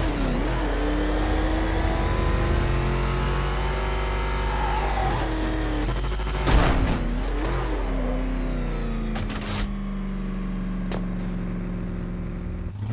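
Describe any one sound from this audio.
A powerful engine roars, its pitch rising and falling as it revs.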